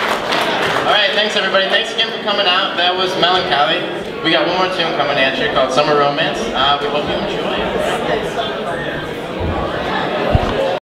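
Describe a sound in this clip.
A young man speaks animatedly into a microphone over loudspeakers.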